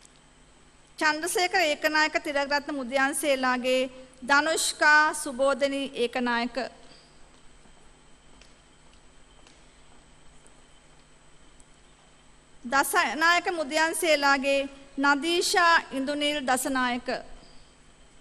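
A woman reads out calmly over a loudspeaker in a large hall.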